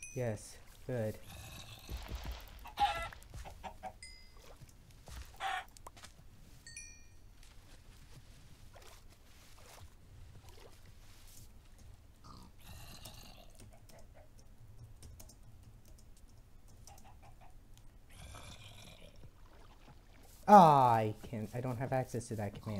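A pig grunts.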